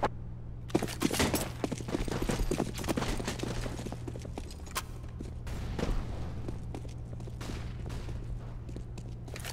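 Quick footsteps patter across hard stone ground.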